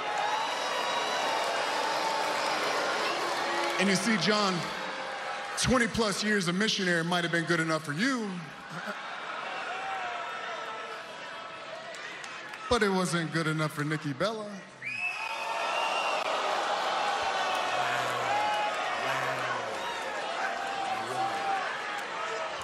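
A large crowd cheers and chants loudly.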